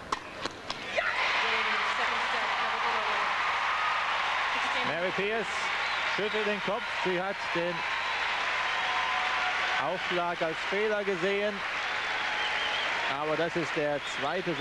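A large crowd applauds and cheers loudly in a big echoing arena.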